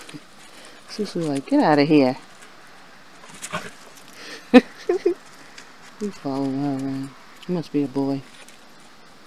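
Dogs whine and yelp as they play.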